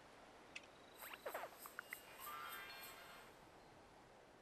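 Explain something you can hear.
A bright, jingling chime plays briefly.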